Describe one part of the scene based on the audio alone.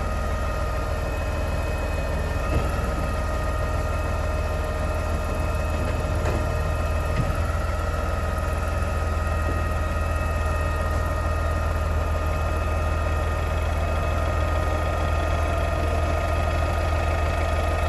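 A garbage truck engine idles with a steady low rumble.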